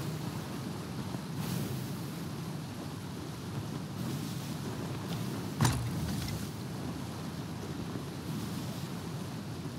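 Rough sea waves roll and crash against a wooden ship's hull.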